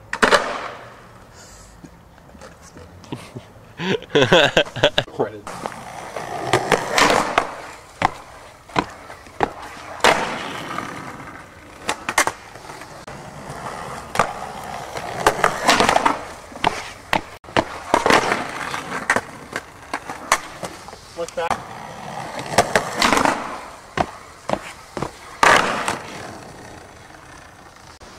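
Skateboard wheels roll and rumble over concrete.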